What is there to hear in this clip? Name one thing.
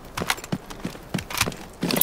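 A rifle magazine clicks into place.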